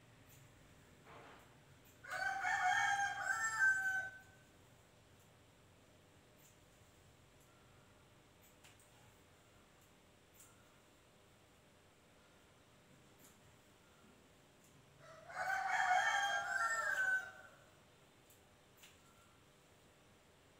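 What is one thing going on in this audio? Fabric rustles softly as it is handled up close.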